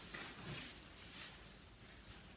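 A plastic protective suit rustles softly.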